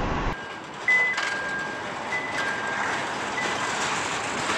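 A forklift beeps as it moves.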